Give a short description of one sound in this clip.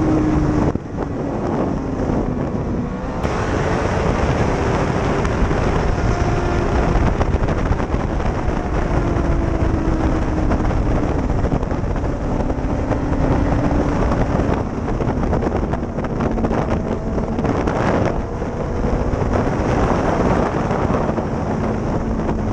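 A motorcycle engine roars loudly up close, its pitch rising and falling through the gears.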